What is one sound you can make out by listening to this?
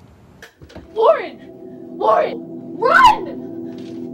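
A young woman cries out in fright.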